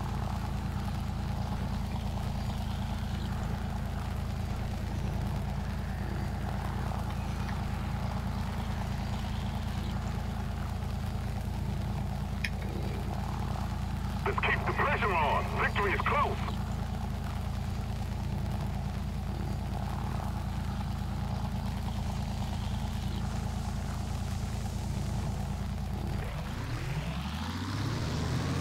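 Propeller engines drone loudly and steadily.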